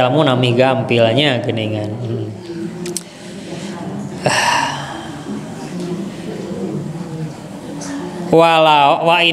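A young man speaks calmly into a microphone in an echoing room.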